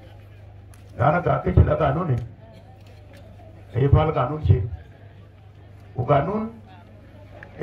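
A middle-aged man speaks forcefully into a microphone over loudspeakers, in short bursts with pauses.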